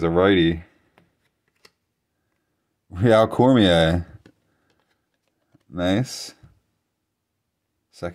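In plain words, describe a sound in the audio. Stiff trading cards slide and tap against each other in someone's hands.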